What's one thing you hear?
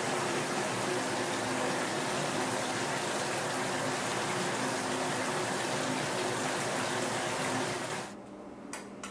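Shower water sprays steadily.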